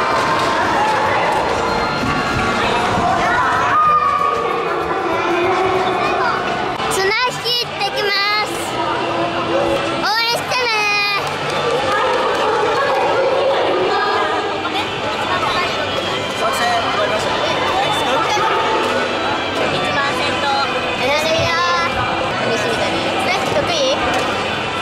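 Many children and adults chatter and shout throughout a large echoing hall.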